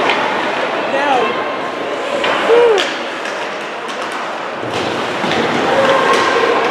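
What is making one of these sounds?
Skates scrape across the ice in a large echoing arena.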